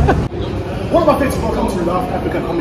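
A man speaks into a handheld microphone.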